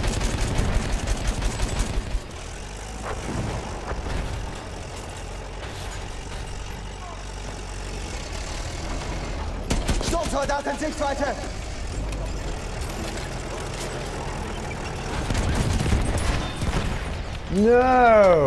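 A shell explodes nearby with a heavy boom.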